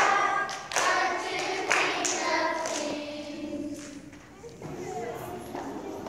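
A group of young children sing together in a room with some echo.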